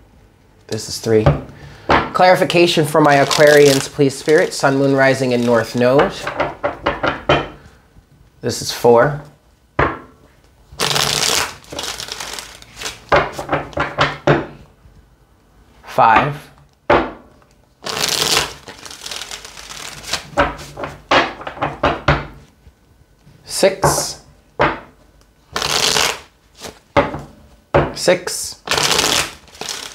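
Playing cards are shuffled with quick, papery riffling.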